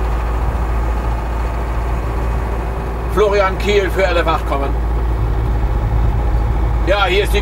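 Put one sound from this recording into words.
An engine rumbles steadily inside a moving vehicle.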